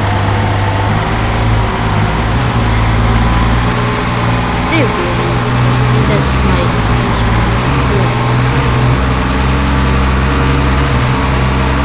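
A car engine drones steadily on a road.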